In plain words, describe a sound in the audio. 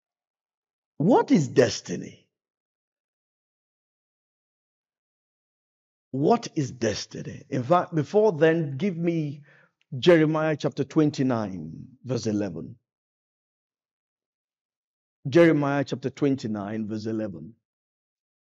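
A man speaks with animation into a microphone, in bursts with long pauses.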